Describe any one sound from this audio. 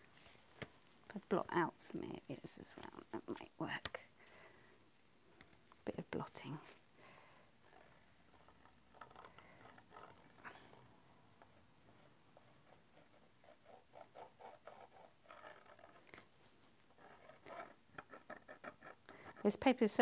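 A paintbrush dabs and scrubs softly on paper.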